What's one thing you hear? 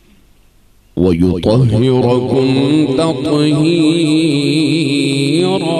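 A young man sings a devotional chant loudly through a microphone and loudspeakers.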